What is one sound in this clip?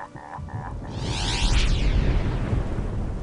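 A magical shimmering sweep rings out.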